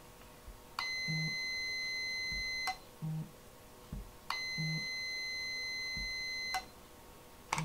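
A phone gives off a steady, high electronic beep.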